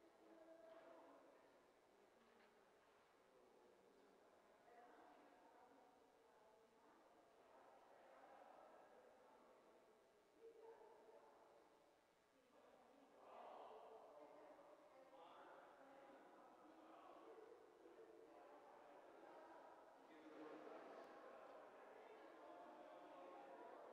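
A few adult men and women talk quietly at a distance in a large echoing hall.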